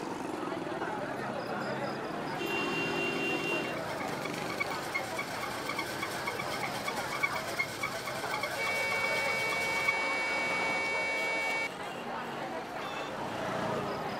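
A crowd chatters in the distance outdoors.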